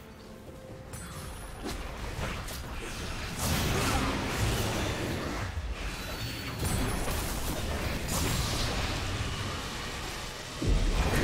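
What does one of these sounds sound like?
Game spell effects whoosh and crackle in quick bursts during a fight.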